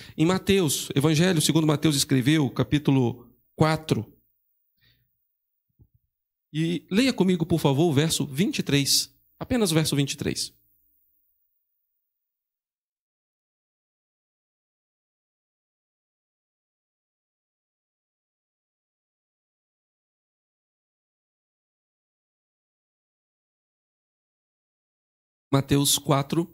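A man speaks into a microphone in a calm, earnest voice, heard through a loudspeaker.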